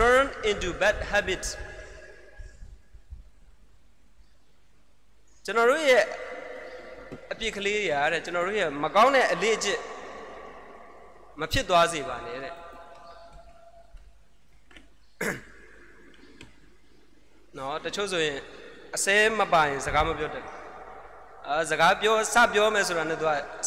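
A young man speaks calmly into a microphone, heard through a loudspeaker in an echoing hall, with pauses.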